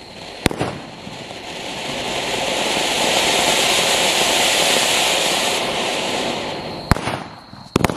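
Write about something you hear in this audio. A firework fountain roars loudly as it sprays sparks, then dies down.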